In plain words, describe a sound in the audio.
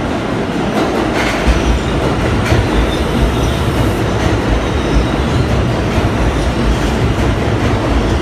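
A subway train rolls into the station, wheels clattering and screeching on the rails.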